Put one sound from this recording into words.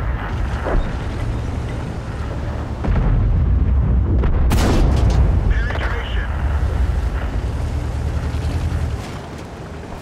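A tank engine rumbles low and steady.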